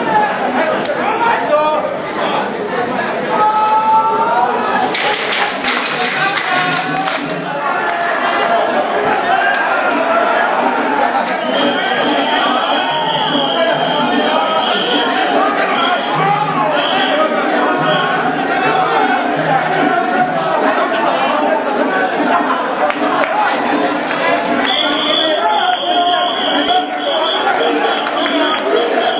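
A large crowd of men chants and shouts rhythmically, close by, in an echoing hall.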